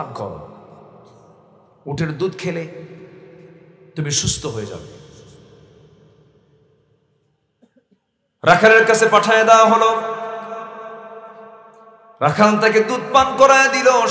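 A man chants and preaches through a microphone and loudspeakers, in long sustained phrases with echo.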